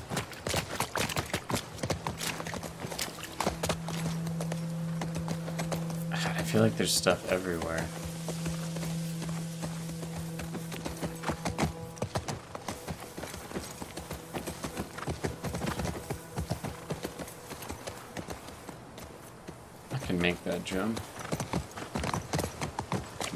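Hooves clop steadily on the ground as a horse walks.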